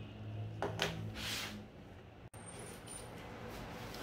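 A plastic mat slides across a table.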